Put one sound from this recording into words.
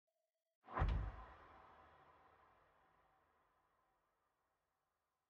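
An electric guitar chord strums once and rings out, slowly fading.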